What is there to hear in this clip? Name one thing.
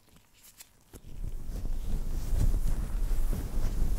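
Gloved fingers rub and scratch a fluffy microphone cover with a loud muffled rumble.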